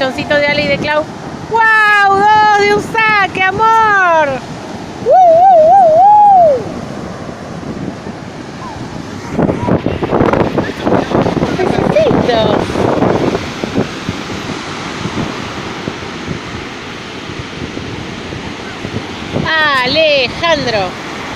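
Waves crash and wash onto a beach.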